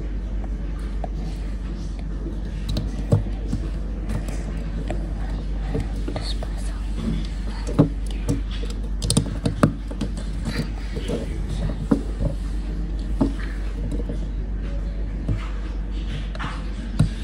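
Small plastic bricks click and snap together.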